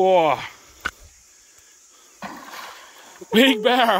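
Something splashes into water.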